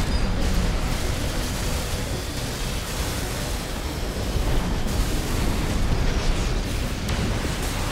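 Heavy machine guns and energy weapons fire in rapid bursts.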